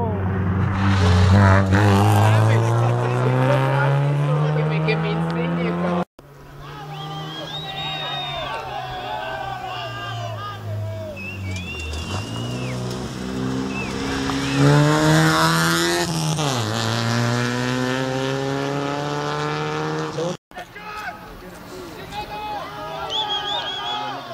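A rally car engine roars loudly and revs up through the gears as the car speeds past.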